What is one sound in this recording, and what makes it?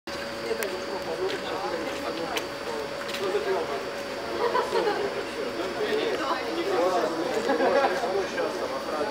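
A crowd of young men and women chatter outdoors.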